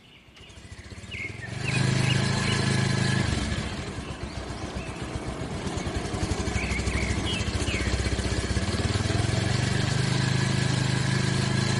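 A motorcycle engine hums as the motorcycle rides closer along a road.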